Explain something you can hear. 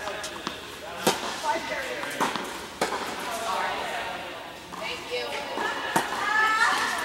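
A tennis racket strikes a ball in a large echoing indoor hall.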